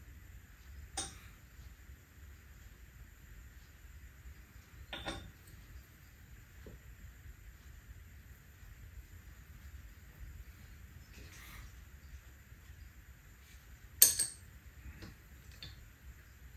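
Clay pieces knock softly on a table.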